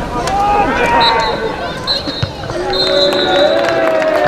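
A referee's whistle blows in short blasts.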